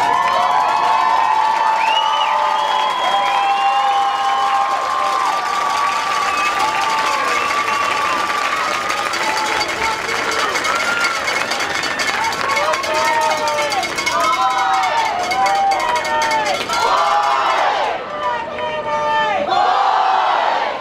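Drums and percussion play along with a marching band.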